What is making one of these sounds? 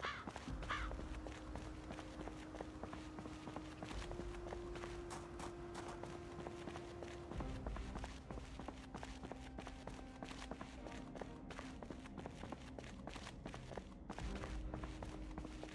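Footsteps walk steadily on hard ground.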